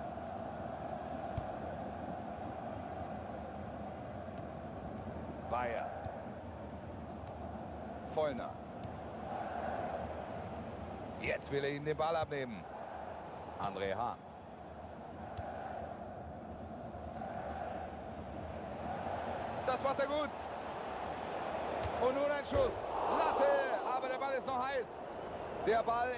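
A large crowd murmurs and chants steadily in a stadium.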